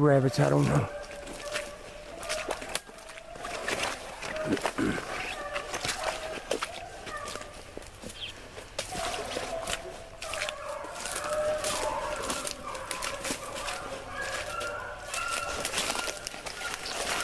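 Dry branches snap and rustle as someone pushes through brush.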